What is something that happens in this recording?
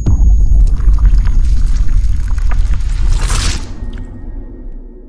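Water splashes loudly.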